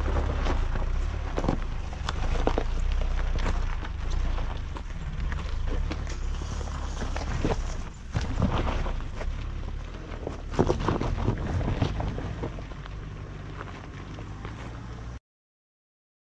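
Tyres crunch over loose stones and dirt.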